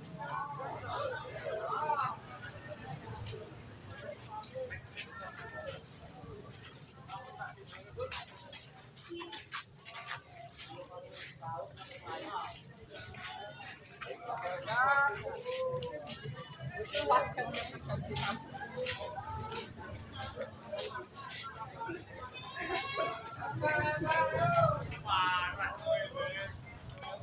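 A crowd of young people chatters as they walk along outdoors.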